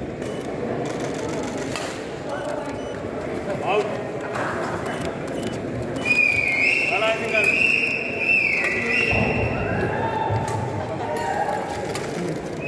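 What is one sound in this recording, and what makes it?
A large crowd of men chatters in an echoing hall.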